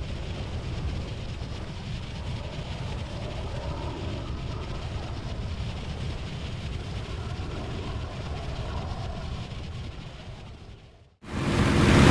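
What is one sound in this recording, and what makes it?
A propeller plane's engine drones steadily from a distance.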